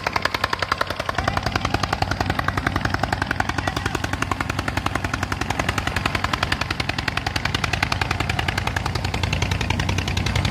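A diesel tractor engine chugs under load.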